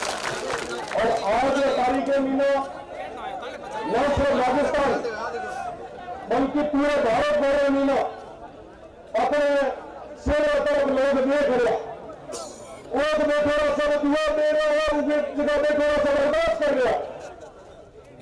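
A young man gives a loud, impassioned speech through a loudspeaker.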